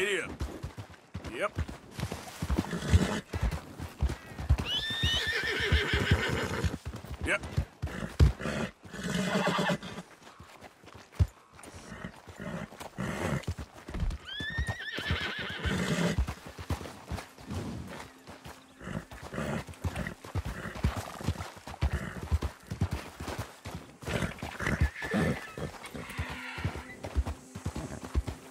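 Horse hooves thud and clop on rough ground.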